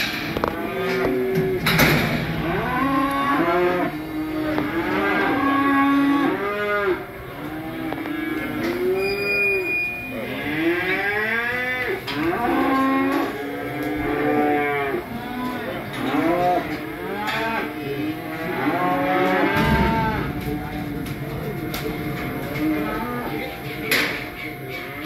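A man talks nearby in a large echoing shed.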